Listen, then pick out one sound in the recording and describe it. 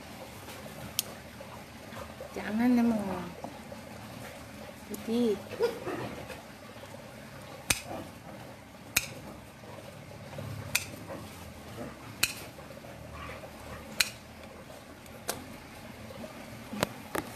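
Nail clippers snip sharply, again and again.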